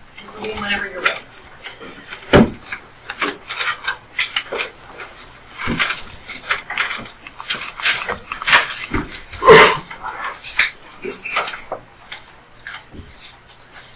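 Footsteps thud across the floor.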